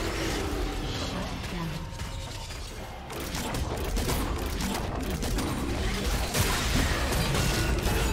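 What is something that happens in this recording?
Game spell effects crackle, whoosh and burst during a fight.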